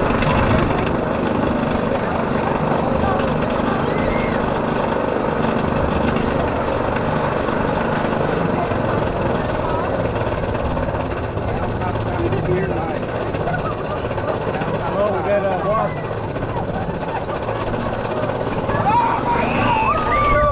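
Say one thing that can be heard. A roller coaster train clatters steadily up a lift hill.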